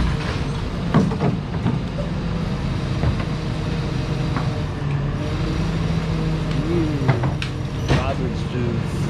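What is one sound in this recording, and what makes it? Metal clanks and bangs sharply a few times from a garbage truck.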